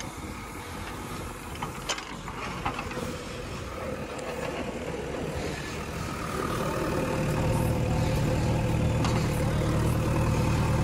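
A diesel backhoe loader engine works under load.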